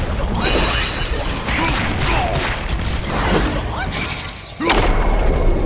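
A large beast snarls and roars.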